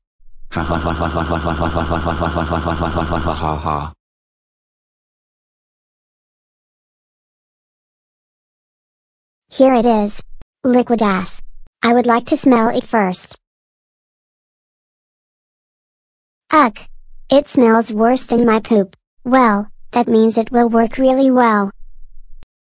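A young boy speaks in a flat, computer-made voice.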